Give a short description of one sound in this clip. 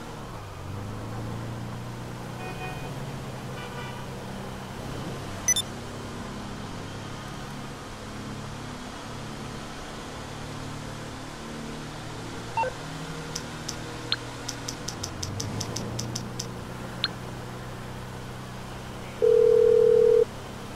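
A van engine hums steadily as it drives.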